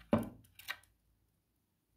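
A spoon taps against a glass bowl.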